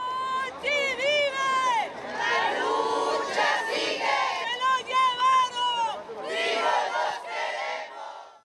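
A group of women sing a slow, wavering song.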